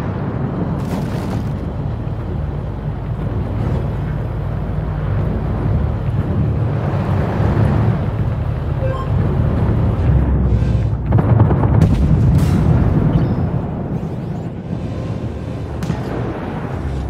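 Cannon shots boom and explosions crack.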